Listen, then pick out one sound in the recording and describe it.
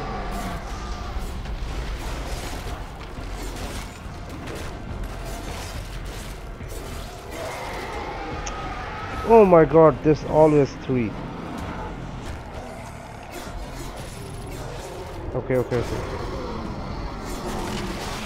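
Heavy blows thud and crunch in a fierce fight.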